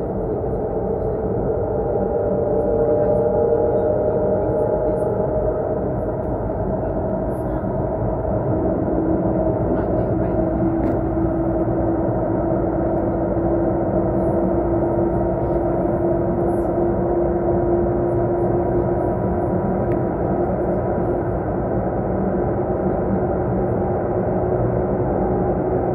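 A train rumbles steadily along, with a low droning hum.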